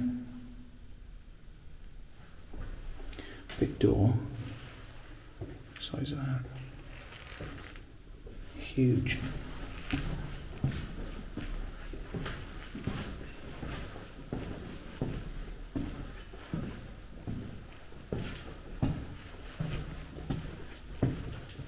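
Footsteps scuff on a hard floor, echoing slightly.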